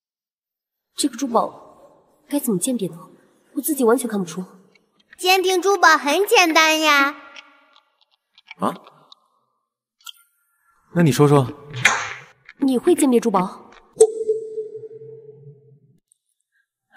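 A young woman speaks with surprise, close by.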